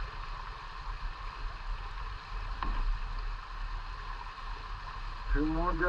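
Shallow creek water ripples and babbles steadily outdoors.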